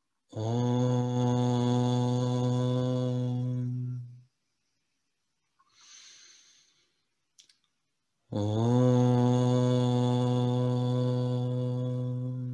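A young man chants a long, steady low tone close to a microphone.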